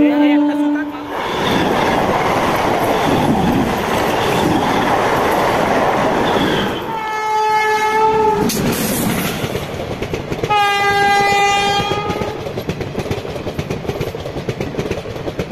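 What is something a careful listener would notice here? A train rattles and rumbles past on the tracks.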